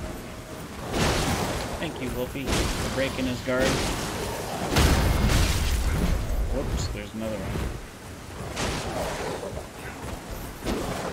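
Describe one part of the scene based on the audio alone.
A sword clashes against a shield with sharp metallic hits.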